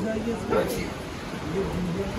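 Women talk casually nearby.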